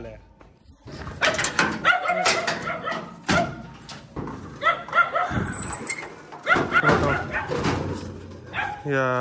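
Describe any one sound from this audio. A metal cage clanks and rattles as it is handled.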